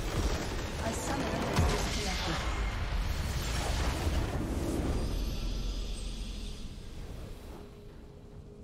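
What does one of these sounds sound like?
A deep explosion rumbles as a building in a video game is destroyed.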